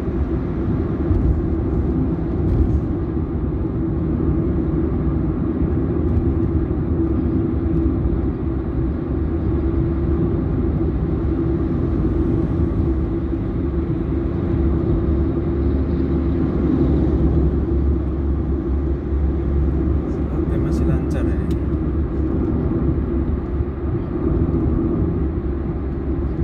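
A car's engine hums steadily while driving on a motorway.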